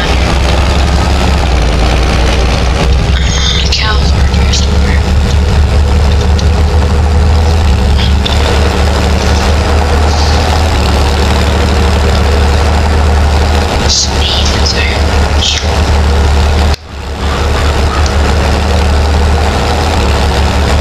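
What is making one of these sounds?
A diesel tractor engine drones as the tractor drives.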